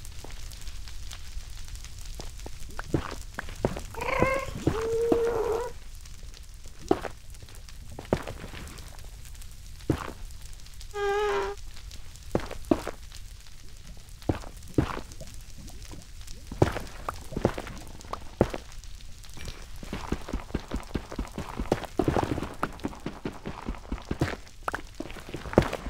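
Stone blocks crunch and crack as they are dug out, one after another.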